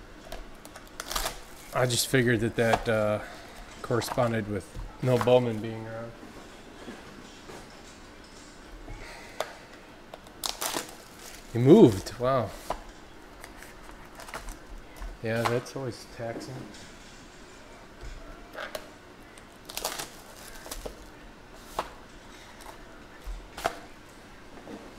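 Cardboard packs tap and slide against each other.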